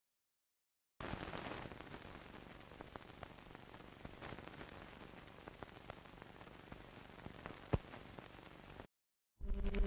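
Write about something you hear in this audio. Old film crackles and pops softly.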